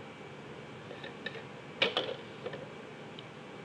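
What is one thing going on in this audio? A plastic set square taps and slides across paper.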